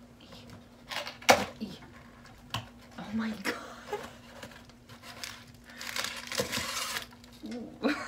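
A cardboard box rustles and scrapes as it is opened.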